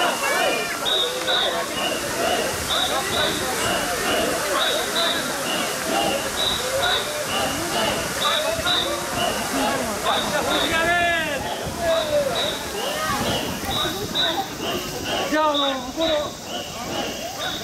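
A large crowd of men chants loudly and rhythmically.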